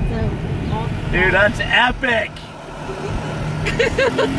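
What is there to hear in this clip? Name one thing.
A woman talks outside an open car window.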